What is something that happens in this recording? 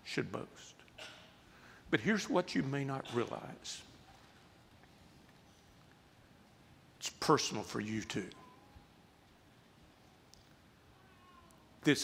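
A middle-aged man speaks slowly and earnestly into a close microphone, with long pauses.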